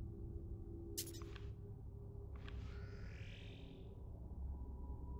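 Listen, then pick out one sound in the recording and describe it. A short electronic notification chime sounds.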